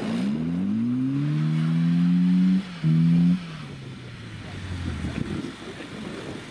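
A car engine revs hard and rises in pitch, then drops away.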